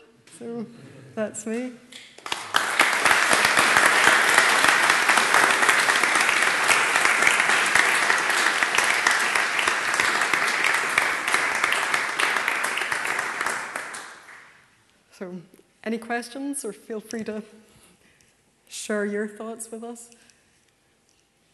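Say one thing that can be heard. A young woman speaks into a microphone.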